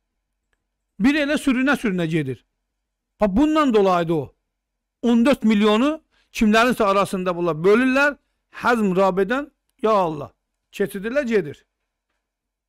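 An older man speaks with animation into a microphone, close up.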